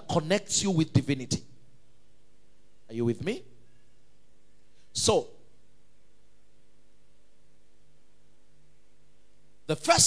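A man preaches with animation through a microphone and loudspeakers, in short bursts with pauses.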